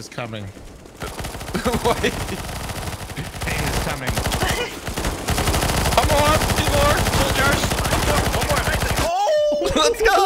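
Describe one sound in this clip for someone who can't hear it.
Gunfire from a game rattles rapidly.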